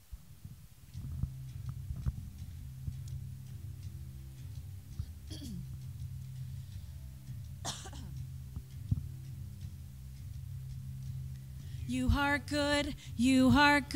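A keyboard plays soft, sustained chords.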